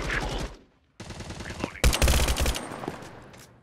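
A rifle fires in a video game.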